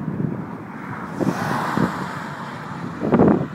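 A car speeds past on a road with a rushing whoosh.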